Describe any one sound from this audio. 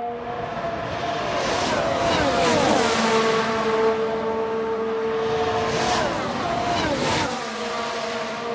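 Racing cars whoosh past one after another.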